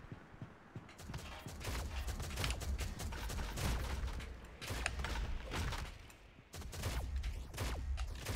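A video game shotgun fires in bursts.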